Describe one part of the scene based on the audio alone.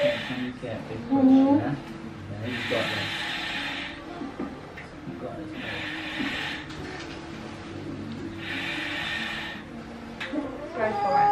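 A woman moans and strains close by.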